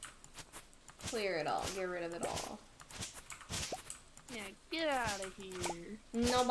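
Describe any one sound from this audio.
A young woman talks into a microphone close up, with animation.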